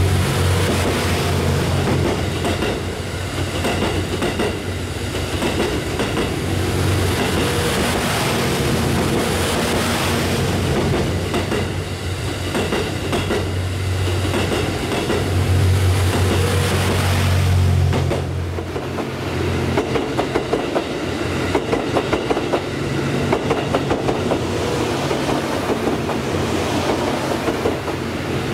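A train rumbles loudly past at close range.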